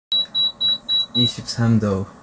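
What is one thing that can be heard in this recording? A remote control beeps several times in quick succession.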